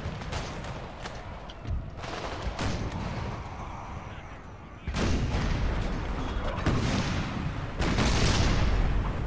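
Muskets fire in crackling volleys, with booms rolling across open ground.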